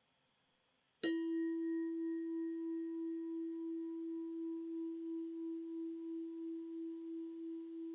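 A metal bowl is struck once and rings on with a long, steady, slowly fading tone.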